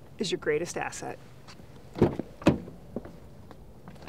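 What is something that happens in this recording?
A car door thumps shut.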